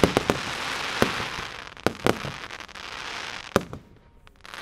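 Firework shells burst with loud booms.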